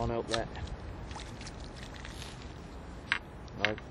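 A small fishing float plops into calm water.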